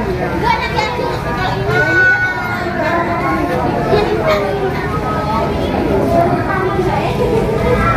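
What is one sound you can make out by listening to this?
A crowd of people murmurs nearby.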